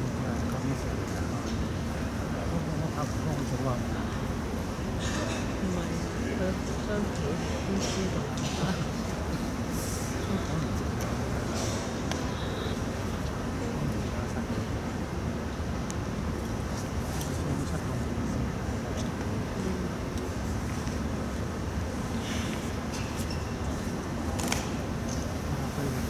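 Soft shoes shuffle and tap on a wooden floor in a large echoing hall.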